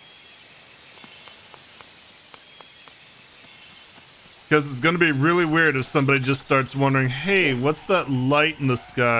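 Quick footsteps patter on stone and ground.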